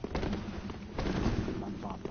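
A fire spell bursts and crackles.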